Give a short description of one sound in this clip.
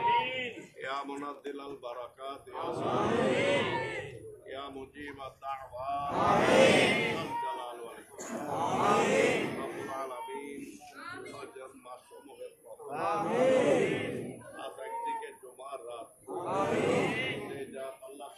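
A man recites a prayer aloud in a chanting voice.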